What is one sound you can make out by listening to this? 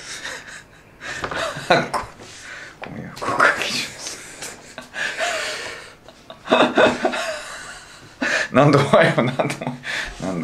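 Two men laugh heartily together.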